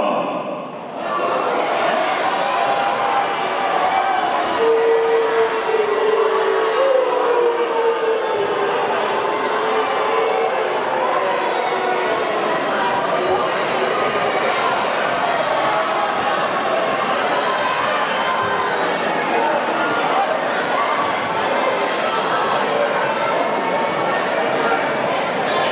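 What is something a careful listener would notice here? A crowd chatters and cheers throughout a large hall.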